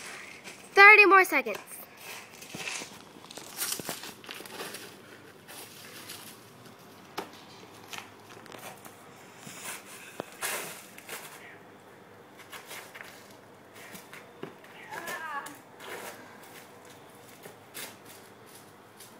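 Feet scuffle and rustle through dry leaves.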